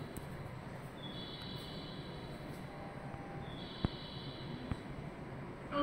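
An elevator beeps in short high tones.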